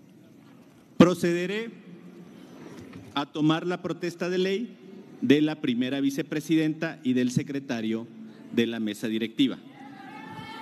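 A man speaks loudly through a loudspeaker in an echoing hall.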